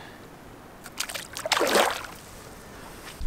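A fish splashes into the water.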